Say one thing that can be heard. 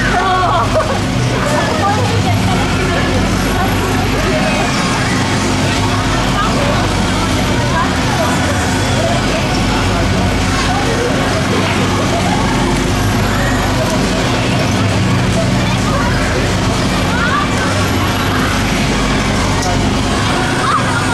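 A fairground ride whirs and rumbles steadily as it spins.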